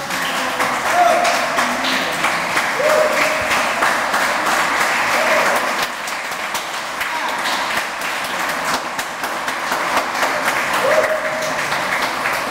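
People in an audience cheer and call out.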